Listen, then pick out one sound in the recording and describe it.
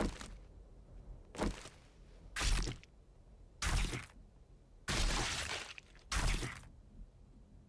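An axe chops into an animal carcass with heavy thuds.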